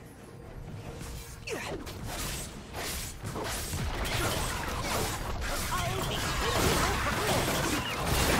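Game sound effects of spells and hits clash during a fight.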